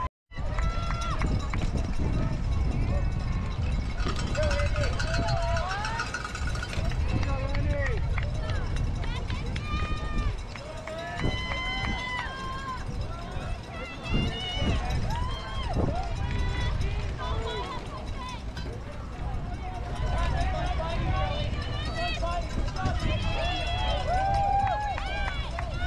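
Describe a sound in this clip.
Bicycle tyres roll over grass and dirt.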